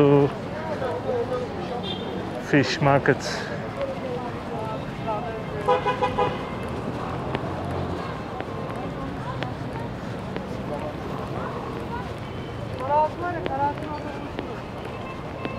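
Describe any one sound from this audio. A crowd of passersby chatters in the background outdoors.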